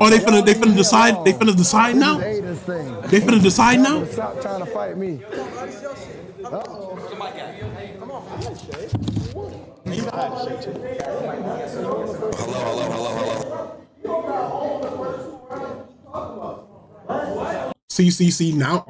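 Several men talk and shout over one another in a lively crowd.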